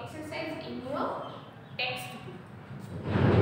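A young woman speaks clearly and close by.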